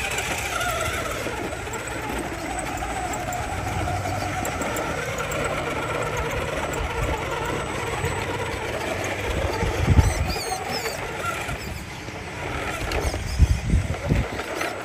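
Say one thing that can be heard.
A small electric motor whines as a toy truck crawls over rock.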